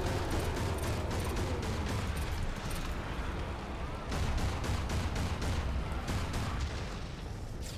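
A tank engine rumbles.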